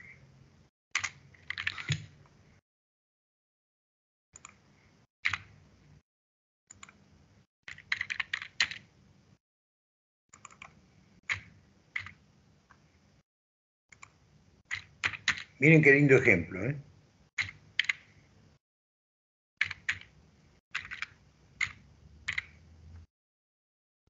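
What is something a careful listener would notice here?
Keys clatter as someone types on a keyboard.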